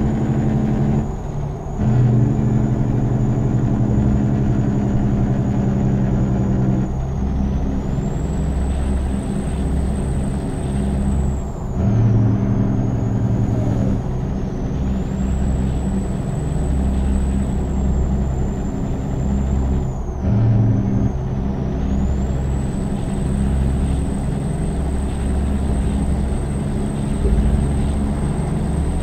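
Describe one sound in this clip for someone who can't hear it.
A diesel truck's turbo whistles, rising and falling with the throttle.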